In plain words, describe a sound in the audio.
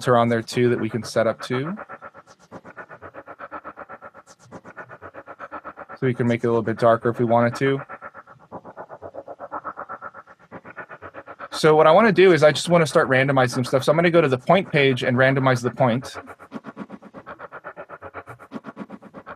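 A recorded sample plays back in short, fast stuttering repeats.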